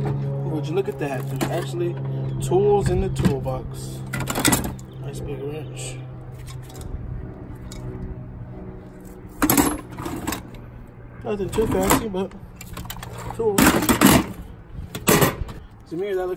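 Metal tools clink and clatter in a metal box.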